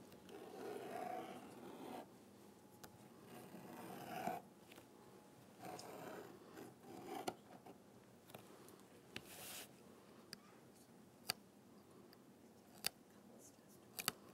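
A craft knife scrapes and cuts through paper.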